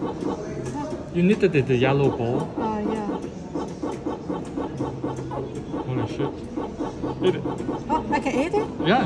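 An arcade game plays bleeping, warbling electronic sound effects.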